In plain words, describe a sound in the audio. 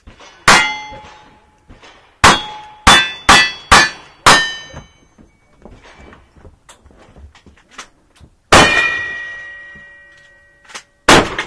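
Steel targets ring after being hit.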